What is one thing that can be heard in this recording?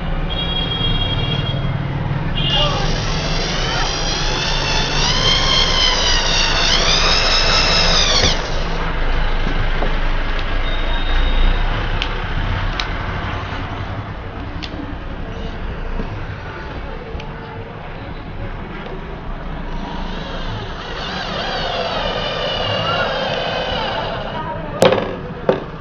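A cordless drill whirs in bursts, its pitch rising and falling as it bores into wood.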